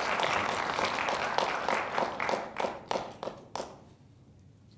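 A group of people clap and applaud, then the applause dies away.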